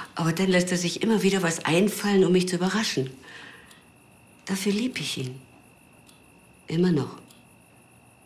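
A woman speaks softly and closely.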